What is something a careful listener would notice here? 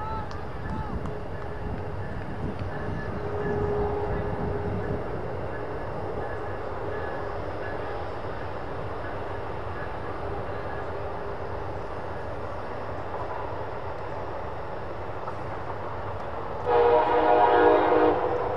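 Wind rumbles across an open field outdoors.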